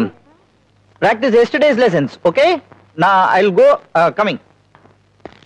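A man talks with animation in a large hall.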